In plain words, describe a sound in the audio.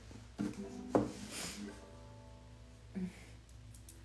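A guitar's strings ring out briefly.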